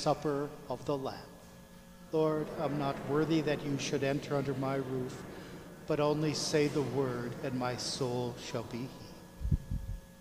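A middle-aged man speaks calmly through a microphone in a reverberant hall.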